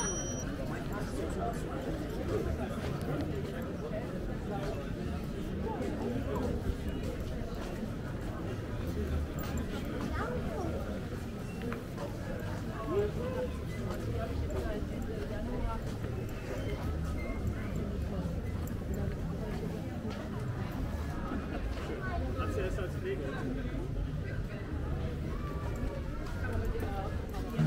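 A crowd murmurs and chatters nearby outdoors.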